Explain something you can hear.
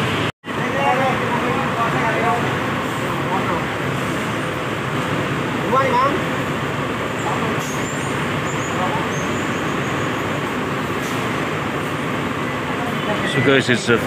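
A steady crowd murmur fills the air outdoors.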